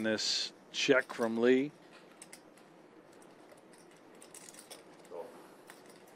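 Poker chips click together as they are stacked.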